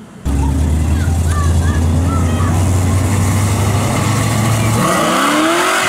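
A car engine rumbles deeply nearby.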